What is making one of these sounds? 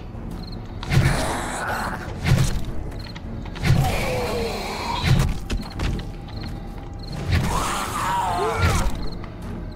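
A club strikes a zombie with heavy thuds.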